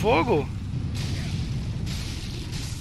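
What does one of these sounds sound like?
A sword strikes with a metallic clash.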